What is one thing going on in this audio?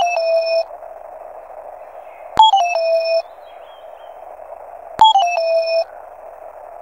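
A short electronic jingle of falling beeps plays.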